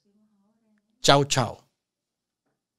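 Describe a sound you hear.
A man speaks emphatically into a close microphone.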